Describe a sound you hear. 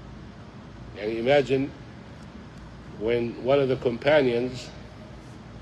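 An older man speaks close to the microphone in short, calm phrases.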